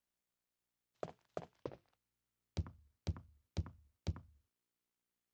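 Footsteps clump quickly on wooden stairs.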